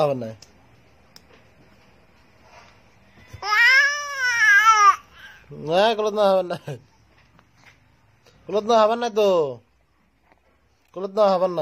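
A baby coos and squeals loudly in short bursts close by.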